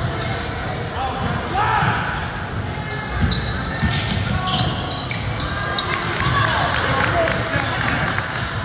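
Sneakers squeak sharply on a hardwood court, echoing in a large gym.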